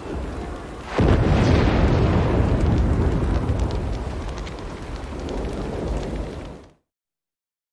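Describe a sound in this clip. Flames roar and rumble loudly, then fade.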